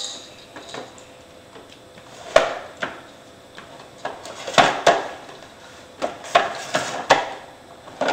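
Plastic wheels of a toy walker rattle and knock across a wooden floor.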